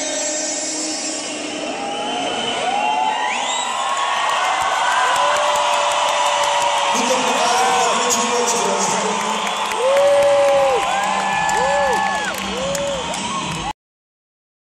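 A large crowd cheers and sings loudly in a big echoing hall.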